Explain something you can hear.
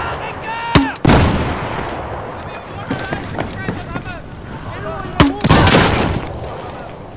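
Loud explosions boom and rumble away.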